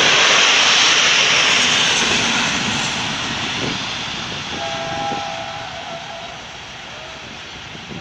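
A train rumbles past close by on the rails and fades into the distance.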